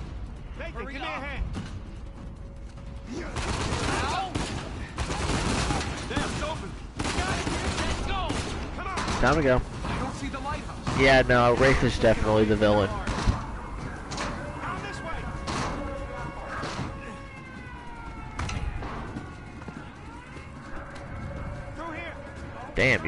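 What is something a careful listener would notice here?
Young men talk urgently to each other.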